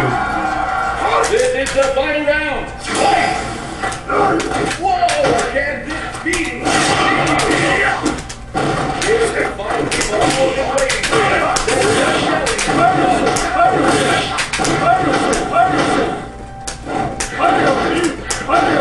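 Punches and kicks land with sharp thuds and smacks in a fighting game.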